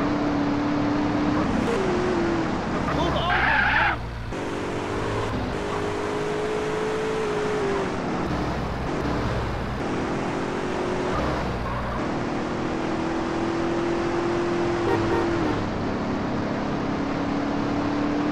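A car engine hums steadily and shifts pitch as it speeds up and slows.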